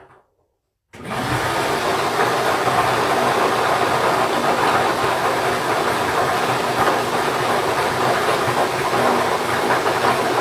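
Air blows plastic balls so they rattle and bounce inside a plastic jug.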